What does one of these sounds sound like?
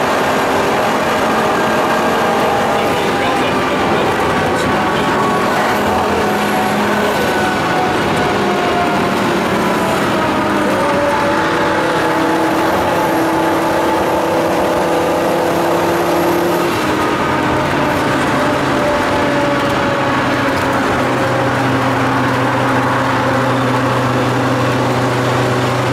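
A car engine roars loudly, its pitch rising and falling as it revs through the gears.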